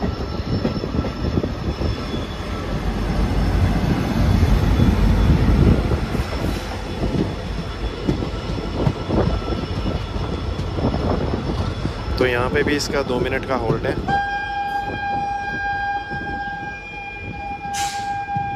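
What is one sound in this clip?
A train passing close by on the next track rushes past with a rolling roar.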